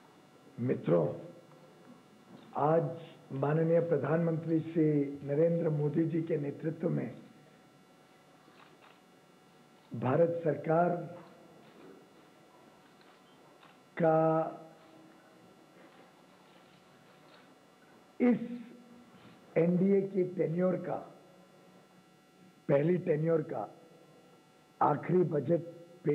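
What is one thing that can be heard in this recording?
A man speaks into a microphone in short, measured phrases with pauses between them.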